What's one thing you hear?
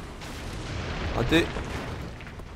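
A shell explodes nearby with a loud blast.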